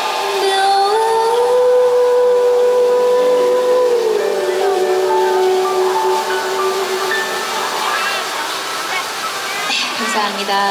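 An electric guitar plays through an amplifier.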